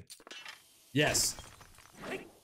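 Rocks break apart with a crunch.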